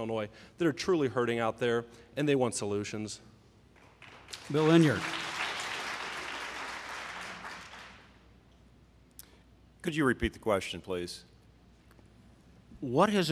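A man speaks firmly into a microphone.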